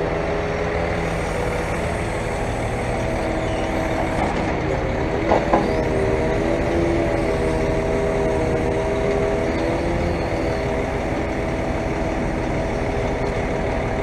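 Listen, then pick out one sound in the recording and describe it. A hydraulic crane whines steadily as its motor runs.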